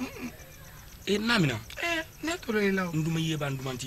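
A young man speaks earnestly nearby.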